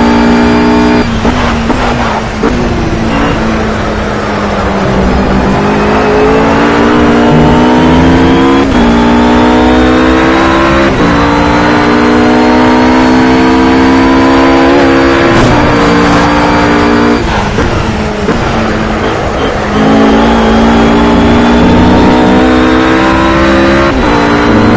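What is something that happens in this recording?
A GT3 race car engine revs hard and climbs through the gears.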